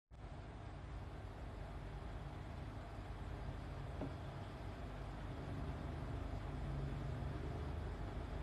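A fingertip taps and slides on a laptop touchpad.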